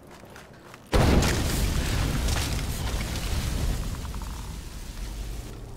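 A large fire whooshes up and roars.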